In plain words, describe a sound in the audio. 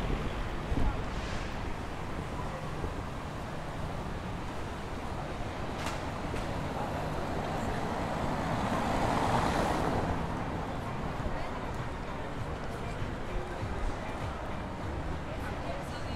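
Footsteps and the chatter of passers-by fill an outdoor street.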